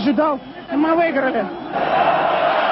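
A young man talks excitedly into a microphone, close by.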